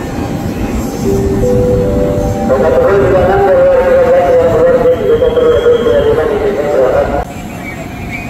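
A train horn sounds loudly.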